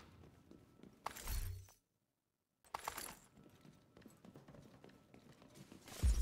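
Footsteps tread softly across a floor.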